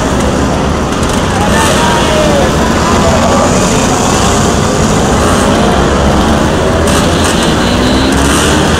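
Scooter engines whine as they rev up a slope.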